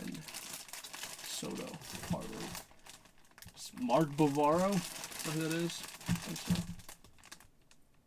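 A plastic wrapper rustles and crinkles.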